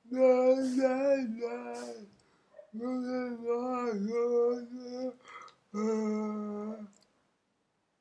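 A middle-aged man sings loudly and close by, holding long notes.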